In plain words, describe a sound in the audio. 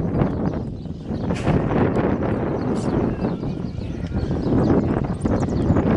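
Horses' hooves pound on a dirt track as they gallop off.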